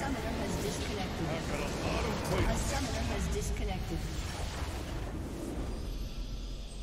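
A video game structure explodes with a deep rumble.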